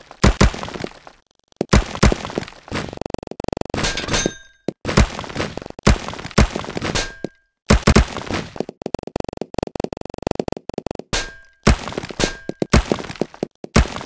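Blocks crack and shatter.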